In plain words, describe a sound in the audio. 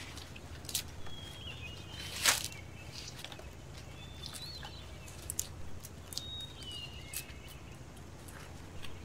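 Dry palm leaves rustle and crackle as they are handled.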